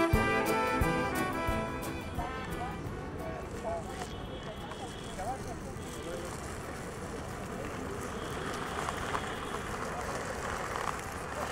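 Inline skate wheels roll and rumble over rough pavement outdoors.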